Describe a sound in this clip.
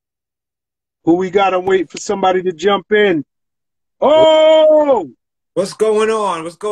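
A middle-aged man speaks with animation, close to a phone microphone.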